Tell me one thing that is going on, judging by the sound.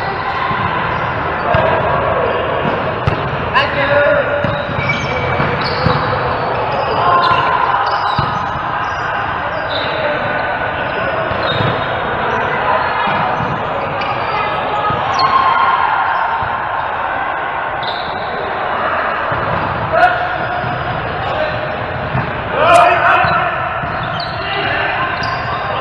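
Adult men and women call out to each other in a large echoing hall.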